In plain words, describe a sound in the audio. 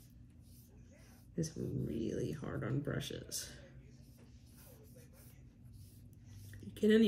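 A small brush strokes softly across paper.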